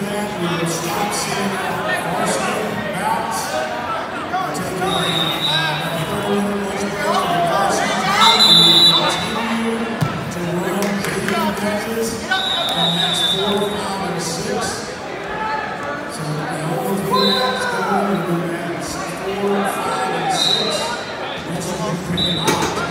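A crowd of spectators talks and shouts in a large echoing hall.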